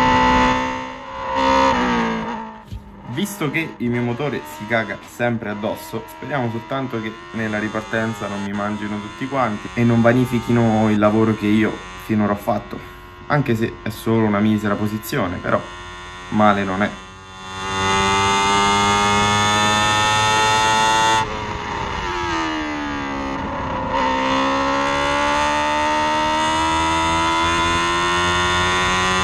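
A race car engine whines loudly at high revs.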